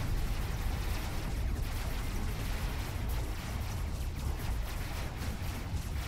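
A heavy engine rumbles steadily.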